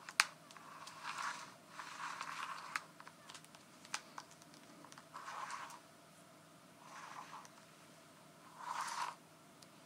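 A tape measure rustles and slides close by.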